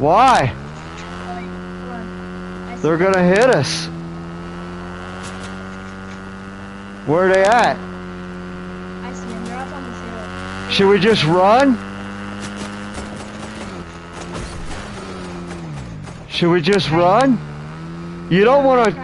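A motorbike engine revs up sharply in short bursts.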